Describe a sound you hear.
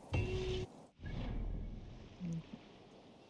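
A low whoosh sweeps in and fades.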